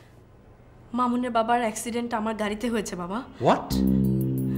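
A young woman speaks with agitation nearby.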